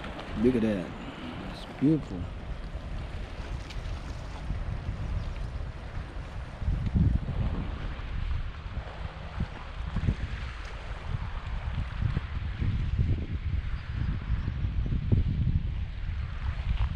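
Wind blows and rumbles against the microphone outdoors.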